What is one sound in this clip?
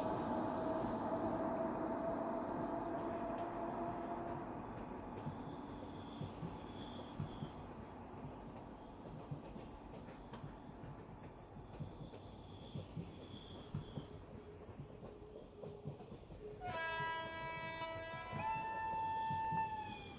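A train rolls slowly past, its wheels clacking rhythmically over rail joints.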